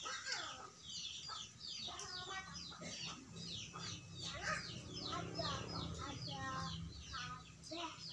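A hen clucks and chirps nearby.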